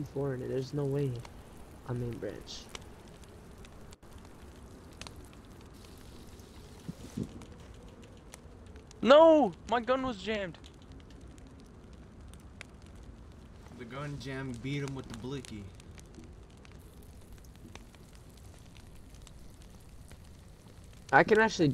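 A small campfire crackles softly.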